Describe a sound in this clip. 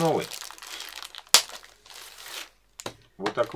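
A plastic wrapper crinkles as hands pull it open.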